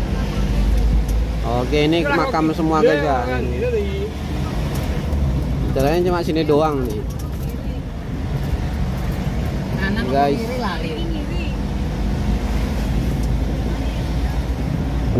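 A vehicle engine rumbles steadily from inside as it drives along a road.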